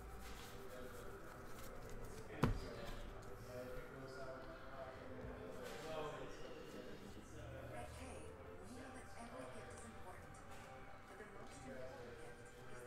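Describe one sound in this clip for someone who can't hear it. Trading cards slide and rustle as hands flip through them.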